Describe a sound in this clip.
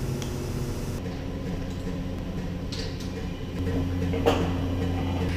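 A large machine hums steadily in a big hall.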